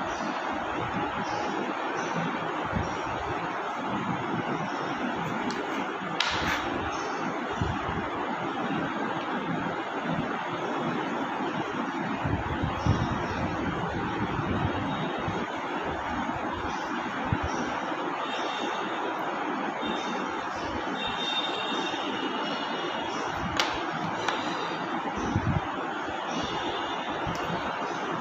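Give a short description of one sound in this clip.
A crayon rubs and scratches across paper.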